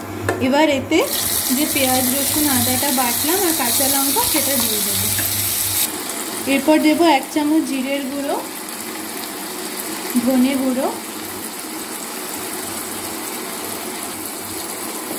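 Hot oil sizzles and crackles loudly in a pan, then settles to a softer sizzle.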